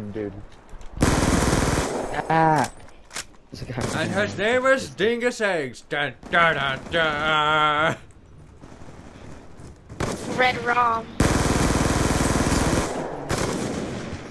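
Gunfire bursts out in rapid volleys.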